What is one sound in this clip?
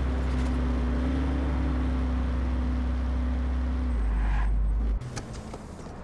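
A car engine rumbles loudly and steadily.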